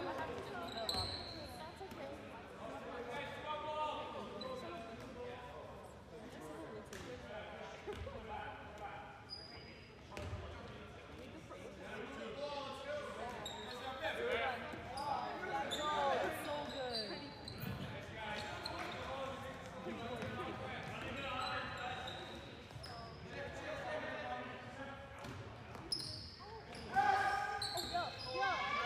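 A crowd of players and spectators shouts and chatters in a large echoing gym.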